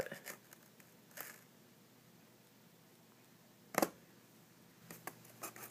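Fingers brush and tap against a foam block.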